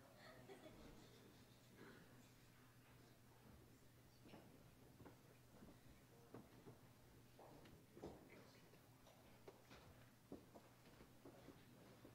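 Footsteps shuffle on a carpeted floor.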